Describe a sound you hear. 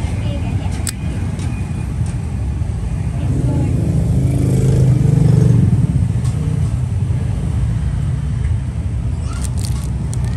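A metal lighter clicks and taps softly as fingers turn it over.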